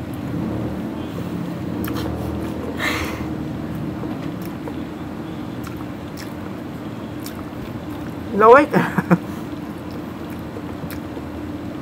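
A young woman chews crunchy vegetables close to the microphone.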